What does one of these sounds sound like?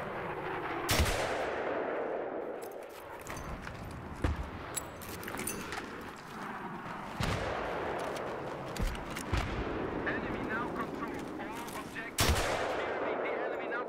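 A rocket launcher fires with a loud blast and a rushing roar.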